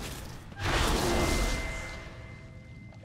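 A large beast crashes heavily to the ground with a loud rumbling thud.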